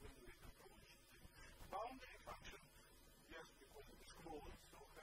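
An elderly man lectures calmly, heard through a microphone in a large room.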